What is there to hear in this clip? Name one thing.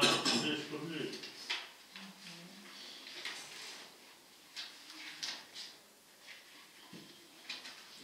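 A man speaks calmly in a quiet room.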